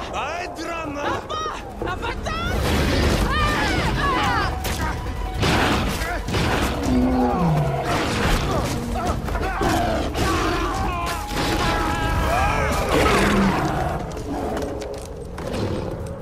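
A big cat snarls and roars.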